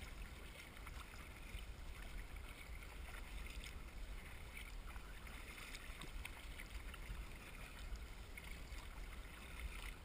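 Water splashes and laps against the bow of a paddleboard.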